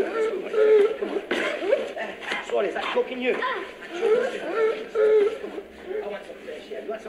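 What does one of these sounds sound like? A young man shouts and groans in struggle.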